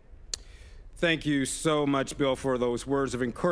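A man speaks calmly through a loudspeaker system outdoors.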